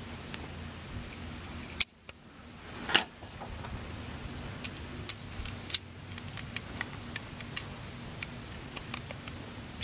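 A metal blade clicks and snaps into place in a power tool.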